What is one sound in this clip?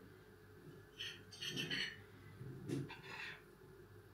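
A metal utensil scrapes and taps a frying pan.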